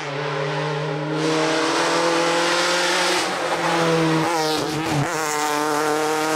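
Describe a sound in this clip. A racing car roars past close by.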